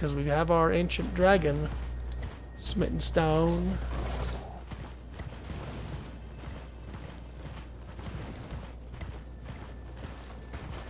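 Horse hooves thud rapidly on the ground.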